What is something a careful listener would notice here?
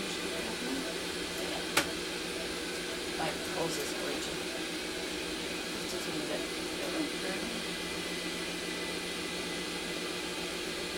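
Medical equipment hums steadily in the background.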